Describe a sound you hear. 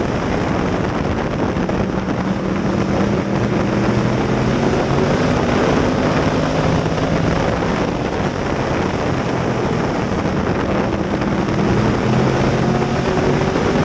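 A race car engine roars loudly up close, rising and falling in pitch as it speeds around the track.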